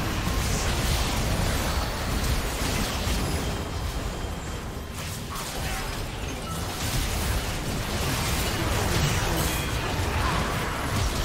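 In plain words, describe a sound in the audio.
Spell effects and weapon hits crackle and clash in a rapid, busy battle.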